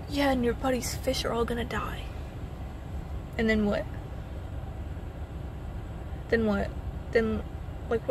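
A young woman talks calmly and close by, in bursts with pauses.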